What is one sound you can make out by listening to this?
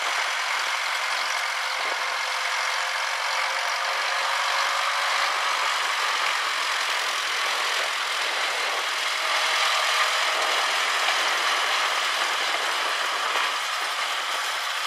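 An antique Farmall M tractor's four-cylinder gasoline engine chugs as the tractor drives slowly over dirt.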